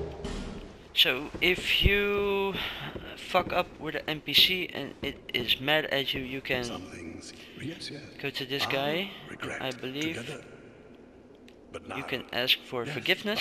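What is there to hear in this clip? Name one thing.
A man speaks slowly in a deep, calm voice.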